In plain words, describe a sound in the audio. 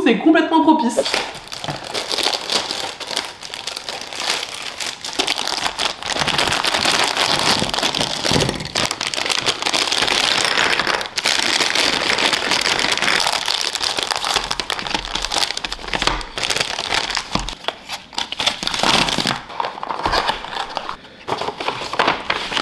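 Plastic wrappers crinkle and rustle as they are handled.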